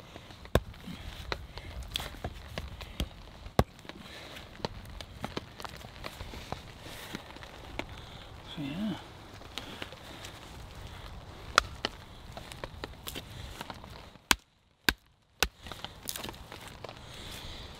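A knife splits and shaves dry wood with sharp knocks.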